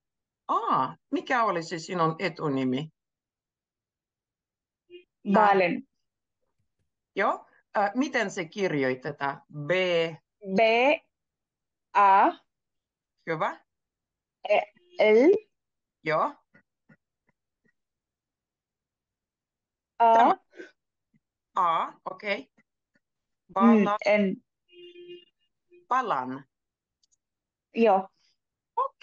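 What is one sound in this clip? A woman speaks calmly and slowly through an online call.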